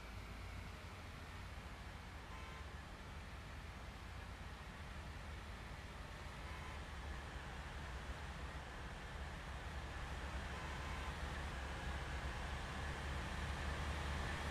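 A diesel bus engine runs.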